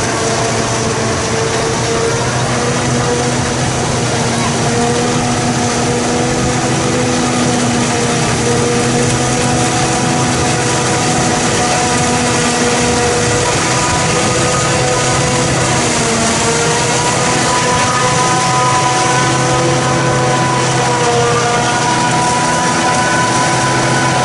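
A forage harvester roars as it chops maize stalks.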